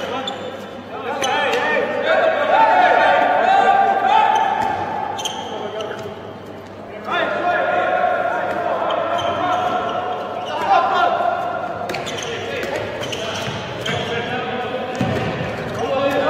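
A ball bounces on a hard floor in a large echoing hall.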